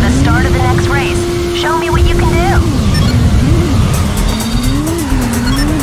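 Tyres screech as a motorcycle spins its rear wheel.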